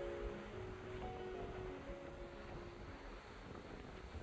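Small waves lap on the water.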